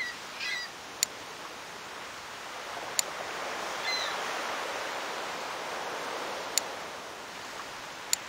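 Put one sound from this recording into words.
A short click sounds several times as menus open and close.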